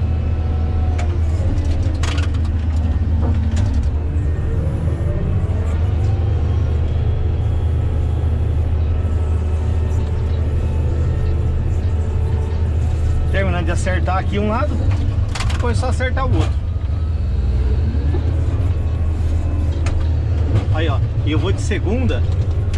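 A grader blade scrapes along a dirt road.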